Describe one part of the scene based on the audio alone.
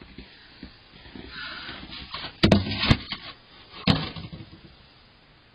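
A snow shovel scrapes through snow.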